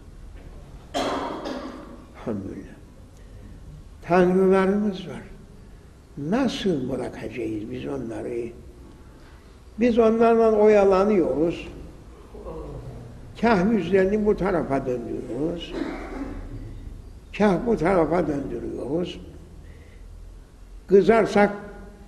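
An elderly man preaches loudly in a chanting voice, echoing in a large hall.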